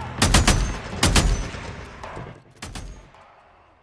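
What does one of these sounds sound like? A rifle fires a quick burst of loud shots.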